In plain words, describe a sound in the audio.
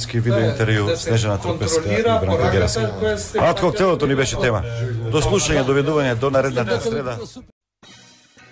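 An older man talks back into a close microphone.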